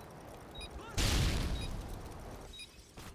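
An explosion booms and rumbles nearby.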